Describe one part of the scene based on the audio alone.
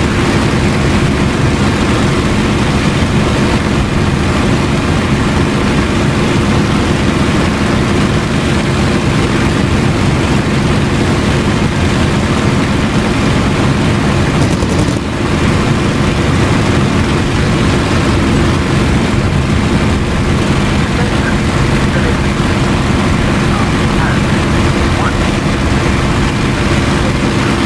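A propeller aircraft engine drones loudly and steadily.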